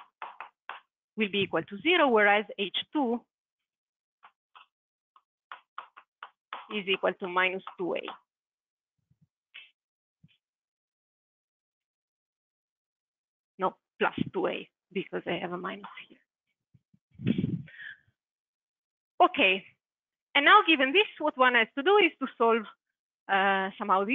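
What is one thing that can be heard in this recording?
A young woman speaks calmly, explaining in bursts with pauses.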